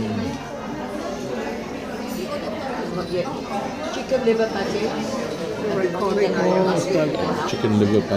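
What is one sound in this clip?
An elderly woman talks casually nearby.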